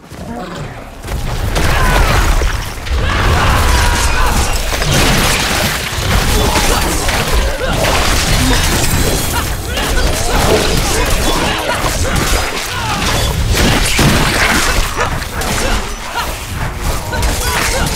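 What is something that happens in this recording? Combat sound effects crash and boom rapidly as spells and blows land.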